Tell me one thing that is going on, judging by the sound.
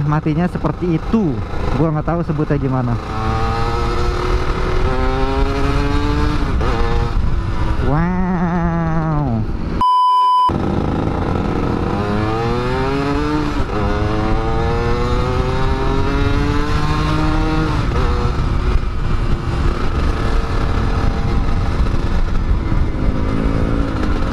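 A scooter engine revs up and down as it rides along.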